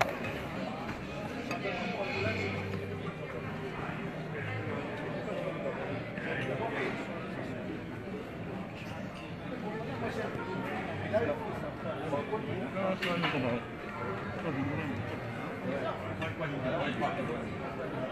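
A crowd chatters in a large, echoing hall.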